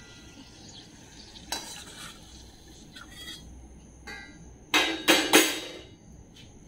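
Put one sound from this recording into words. A metal spoon clinks against a metal pan.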